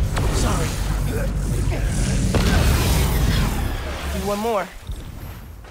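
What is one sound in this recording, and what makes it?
Electricity crackles and sizzles loudly.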